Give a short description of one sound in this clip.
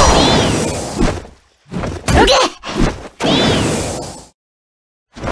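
Fighting game effects whoosh and crackle in short fiery bursts.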